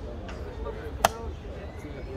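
A chess clock button is pressed with a sharp click.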